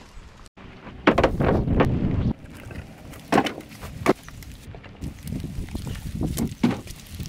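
Split logs clatter and thud as they are tossed onto a pile.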